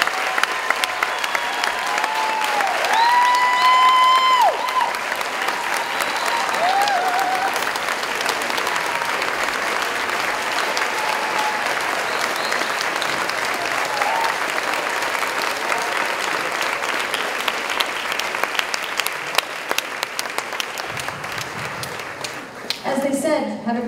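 A large crowd applauds loudly and steadily in a big hall.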